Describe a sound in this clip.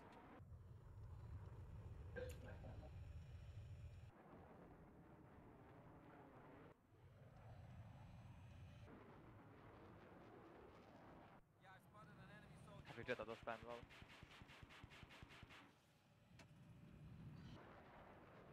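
A fighter jet engine roars in flight.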